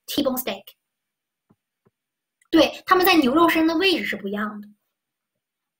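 A young woman speaks calmly into a close microphone, in short bursts with pauses.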